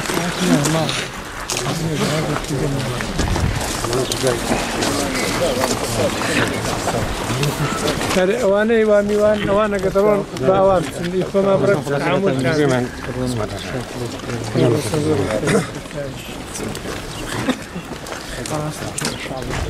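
Several men talk at once close by, with emotion.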